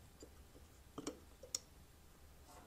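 A small metal part clicks into place.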